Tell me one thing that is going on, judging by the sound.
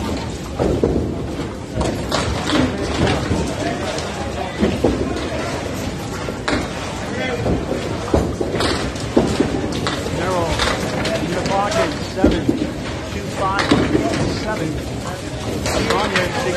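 Bowling pins crash and clatter in a large echoing hall.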